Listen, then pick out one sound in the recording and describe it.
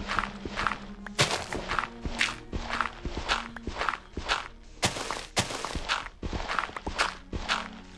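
Dirt and gravel crunch in quick, repeated scrapes as blocks are dug away.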